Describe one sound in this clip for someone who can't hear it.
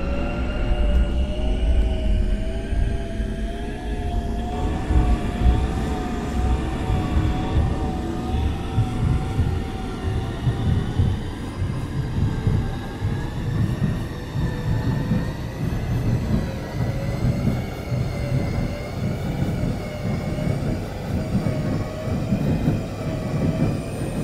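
An electric train motor whines and shifts in pitch.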